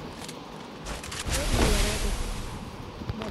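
A heavy stone wall bursts up from the ground with a whoosh.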